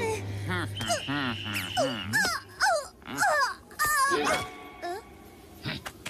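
A cartoon fox chatters in a high, squeaky voice.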